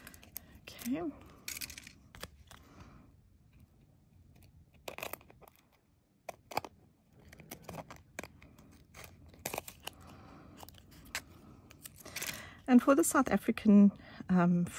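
Thin foil crinkles and rustles between fingers.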